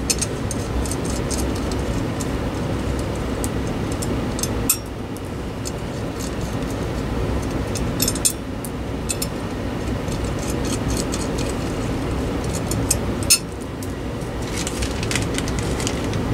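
Small metal parts of a light fixture click and rattle as they are handled.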